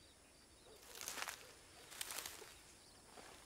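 Water splashes in short bursts onto dry ground.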